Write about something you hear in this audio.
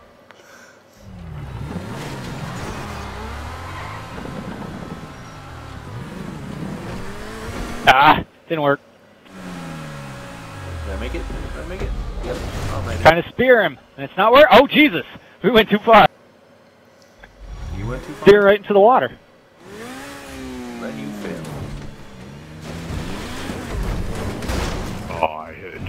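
A sports car engine revs and roars as it races.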